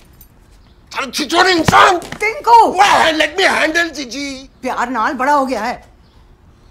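A middle-aged man shouts angrily, close by.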